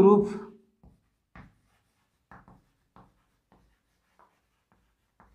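Chalk taps and scratches on a blackboard in short strokes.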